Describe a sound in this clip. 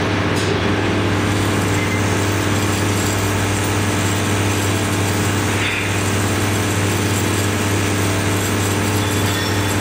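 A vibratory feeder hums steadily with a low buzz.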